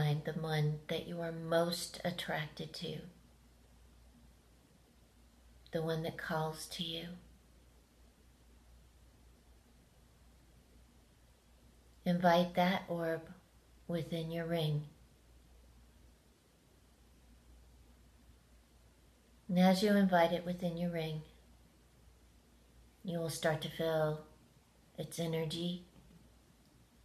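A middle-aged woman speaks calmly close to the microphone, in short bursts with long pauses.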